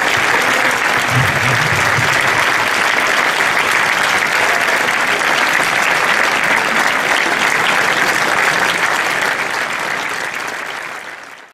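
A large crowd applauds loudly outdoors and the clapping slowly fades.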